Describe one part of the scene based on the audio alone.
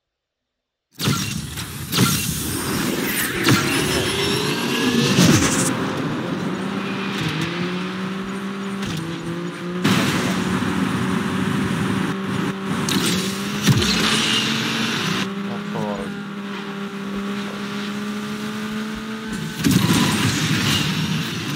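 A racing car engine roars and revs up steadily.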